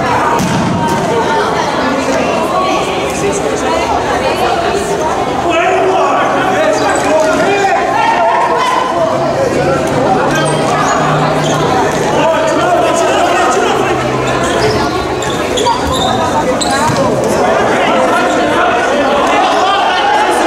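Players' voices shout and call out across a large echoing sports hall.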